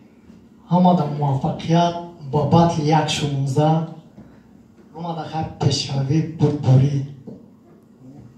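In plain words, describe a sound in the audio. A young man raps loudly through a microphone.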